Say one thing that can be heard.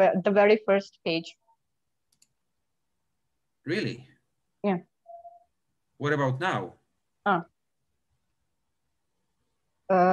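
An older man speaks calmly with pauses, heard through an online call.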